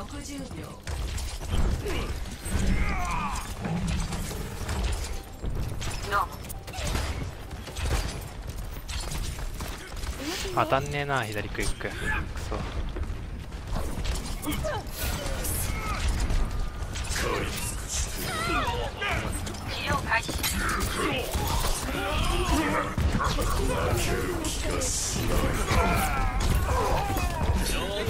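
Rapid gunfire crackles from a video game.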